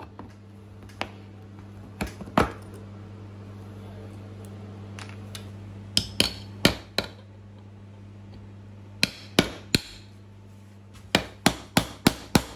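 A hammer knocks a nail into wood with sharp, ringing taps.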